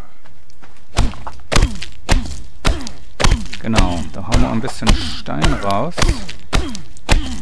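A stone hatchet strikes rock with sharp, repeated knocks.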